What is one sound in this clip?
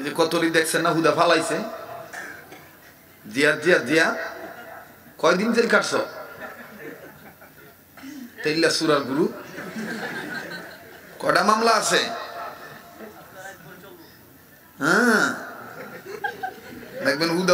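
A man preaches with animation through a microphone, his voice echoing in a hall.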